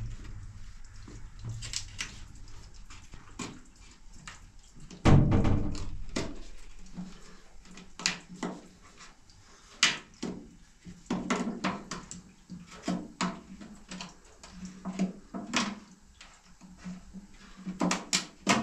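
A man's hands tap and scrape small objects against a wooden floor, with sharp clicks now and then.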